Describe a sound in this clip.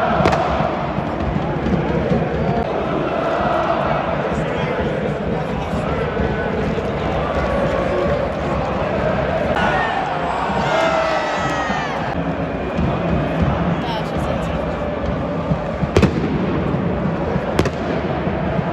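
A large stadium crowd chants and sings loudly, echoing across the open stands.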